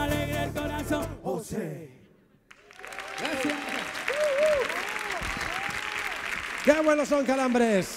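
A live band plays electric guitars, keyboards and drums on a stage.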